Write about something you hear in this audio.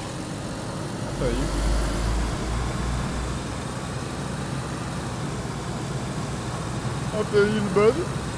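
Tyres crunch on gravel.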